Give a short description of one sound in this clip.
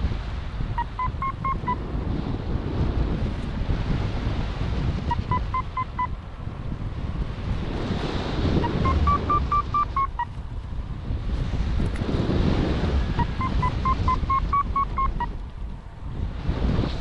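Wind rushes and buffets loudly past, outdoors in flight.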